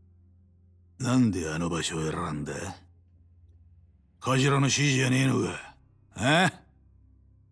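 A man speaks gruffly with a rough, questioning tone.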